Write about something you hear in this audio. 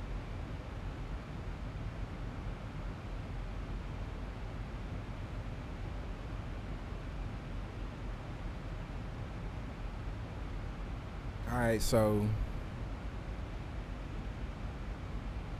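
A steady low aircraft engine drone hums.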